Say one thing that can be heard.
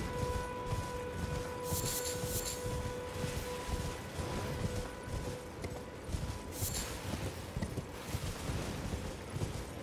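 Horse hooves thud on grass.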